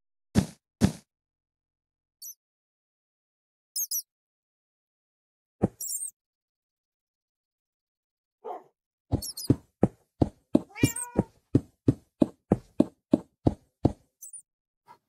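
Blocks are placed with quick, dull knocks, in a rapid run near the end.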